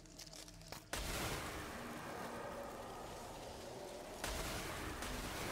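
A weapon blast roars loudly in a video game.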